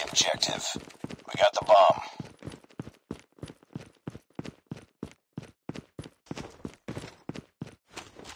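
Footsteps run quickly and steadily over stone.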